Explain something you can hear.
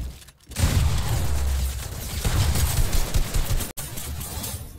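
Wooden panels clatter loudly in quick succession.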